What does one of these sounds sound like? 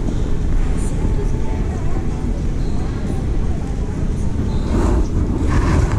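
Suitcase wheels roll across a smooth floor nearby.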